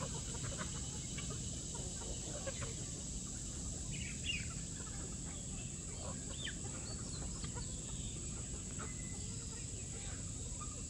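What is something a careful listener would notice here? A flock of chickens clucks and chirps softly outdoors.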